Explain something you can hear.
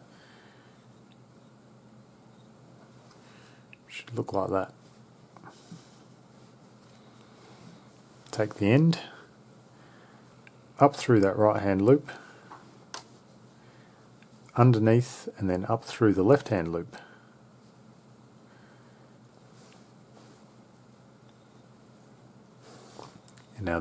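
A cord rustles softly.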